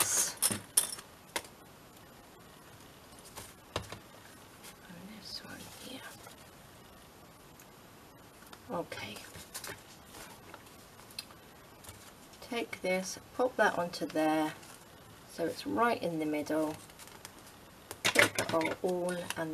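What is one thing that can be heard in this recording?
Paper rustles and crinkles as pages are handled close by.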